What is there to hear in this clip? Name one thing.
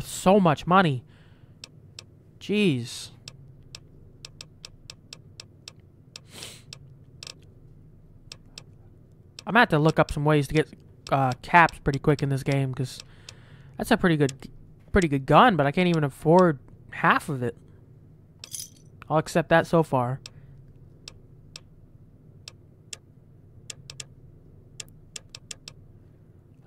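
Soft menu clicks tick again and again.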